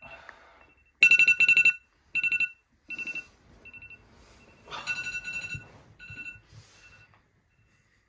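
A phone alarm beeps repeatedly.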